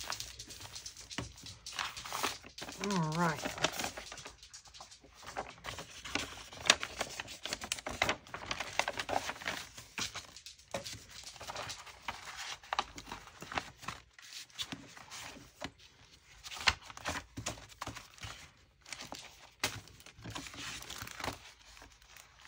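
Sheets of paper and card rustle and slide as hands shuffle them.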